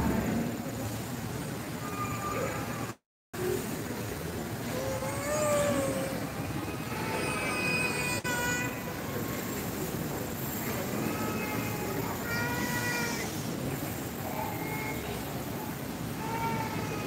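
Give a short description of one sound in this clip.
Voices of men and women sing together loudly.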